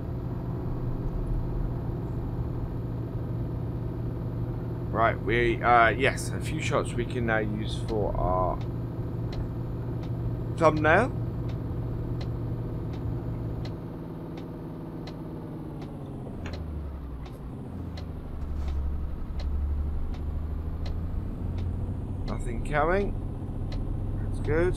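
A heavy truck engine hums steadily, then drops to a deeper rumble.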